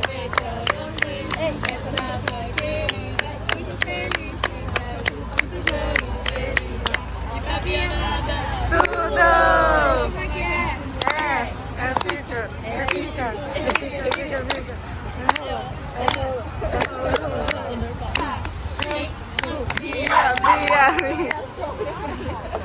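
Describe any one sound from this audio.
People clap their hands in a steady rhythm.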